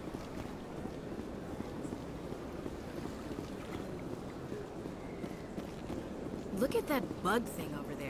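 Footsteps run quickly over a hard floor.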